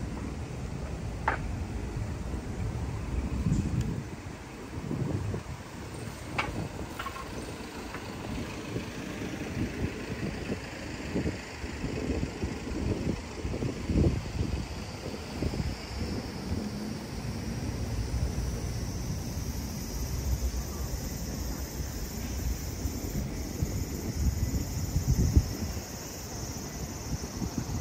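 Traffic rumbles steadily along a nearby street.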